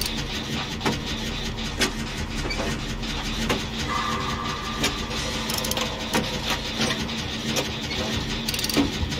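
Metal parts of an engine clank and rattle as they are worked on.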